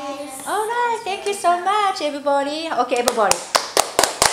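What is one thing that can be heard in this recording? A young girl sings a short high tune close by.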